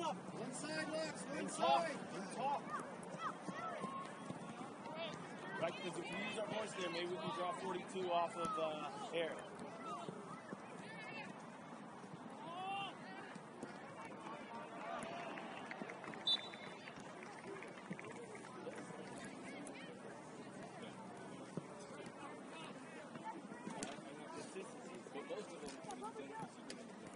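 Young players shout and call out to each other across an open field outdoors.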